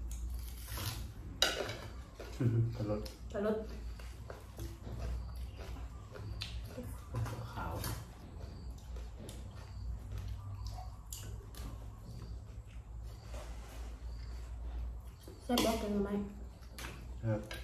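A woman chews and smacks her lips while eating.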